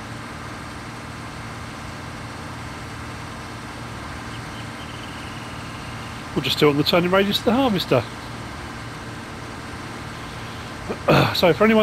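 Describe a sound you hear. A combine harvester cuts through tall corn stalks.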